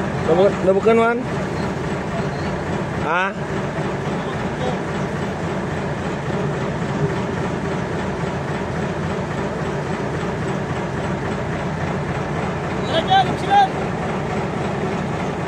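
Water washes against a boat's hull.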